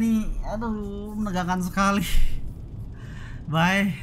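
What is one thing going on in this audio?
A boy laughs.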